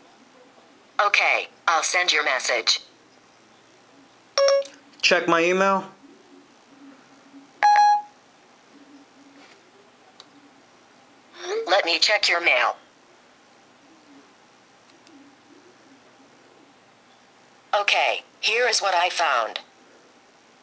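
A synthetic woman's voice speaks calmly through a small phone speaker.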